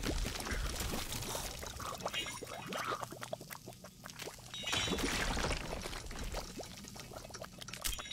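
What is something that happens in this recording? Liquid bubbles and sizzles.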